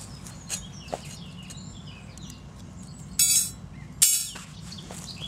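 A metal stove clinks as it is set down on the ground.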